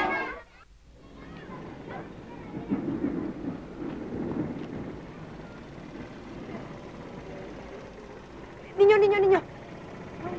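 A crowd murmurs faintly outdoors.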